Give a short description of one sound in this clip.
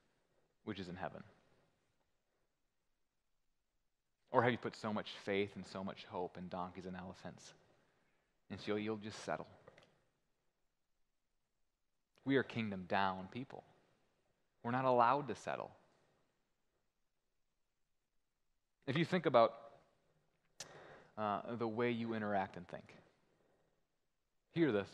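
A man speaks calmly and expressively through a headset microphone, with pauses between phrases.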